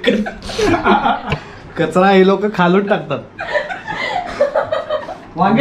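Several people laugh together.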